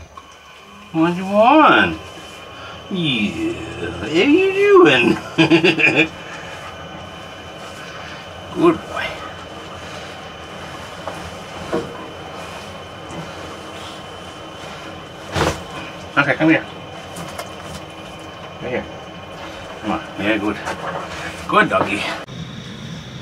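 A man talks softly and affectionately up close.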